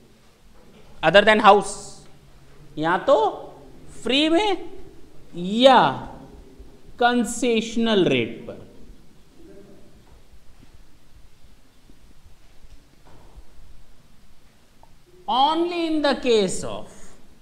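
A man speaks clearly into a clip-on microphone, explaining in a lecturing tone.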